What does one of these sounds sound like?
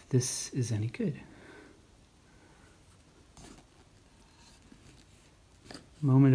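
A knife saws through a crusty loaf of bread.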